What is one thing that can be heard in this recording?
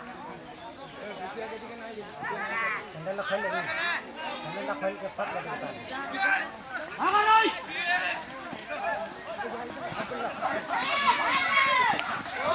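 Several young men shout excitedly outdoors.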